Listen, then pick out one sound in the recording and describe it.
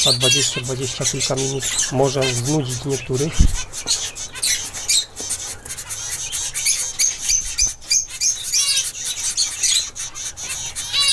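Small birds chirp and peep rapidly close by.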